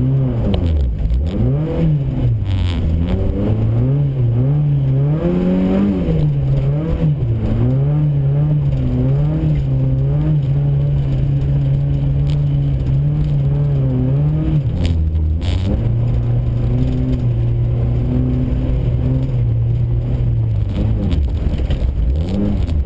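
Tyres crunch and rumble over packed snow and gravel.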